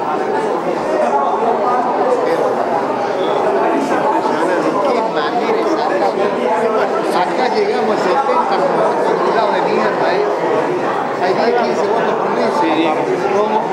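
Many people chatter at once in a busy room.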